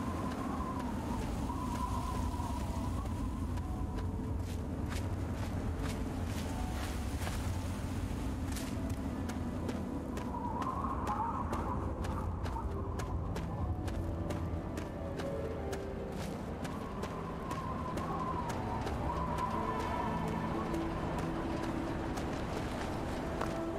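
Footsteps crunch steadily over loose gravel.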